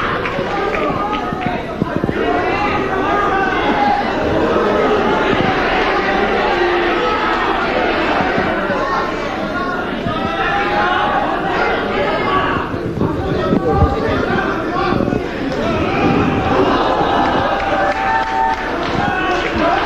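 A large crowd chatters and cheers loudly in an echoing hall.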